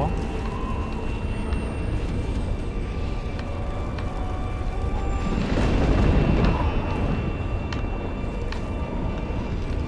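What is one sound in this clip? A large fire roars with a deep, steady rumble.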